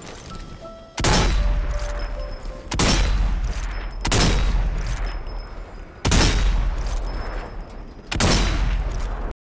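Rifle shots ring out with a heavy boom, several times.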